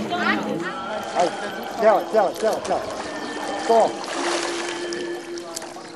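Water splashes as a person wades through a river.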